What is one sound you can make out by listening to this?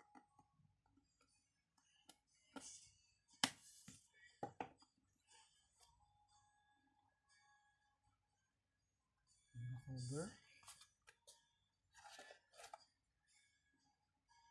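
Cardboard boxes rustle and knock as they are handled.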